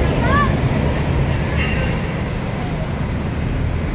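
Motorbike engines idle and rev in traffic nearby.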